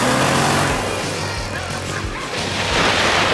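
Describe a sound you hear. A snowmobile engine idles close by.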